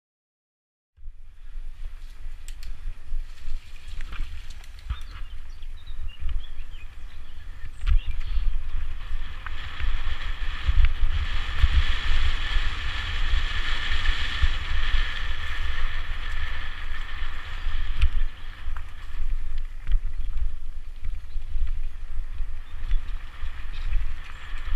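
Bicycle tyres rattle and crunch over a rough dirt track.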